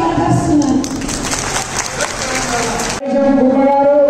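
A woman speaks loudly into a microphone over a loudspeaker.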